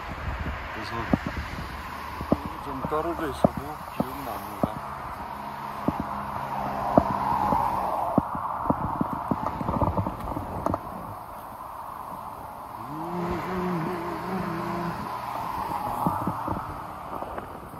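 Cars drive past on a nearby road.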